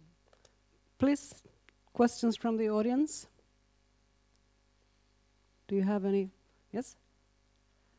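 A woman speaks through a microphone in short phrases.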